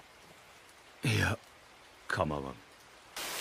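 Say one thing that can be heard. A man speaks briefly in a low voice.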